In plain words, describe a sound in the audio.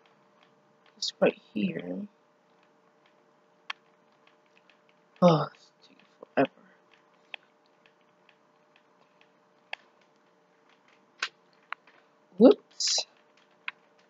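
Blocks crunch and crumble as they are broken, in short separate bursts.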